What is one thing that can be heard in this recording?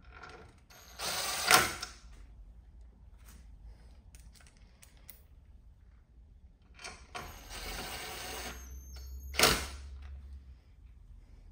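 A power drill whirs in short bursts.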